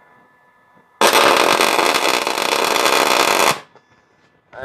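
A welder crackles and buzzes loudly in a steady burst.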